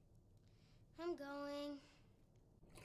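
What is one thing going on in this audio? A young girl speaks briefly.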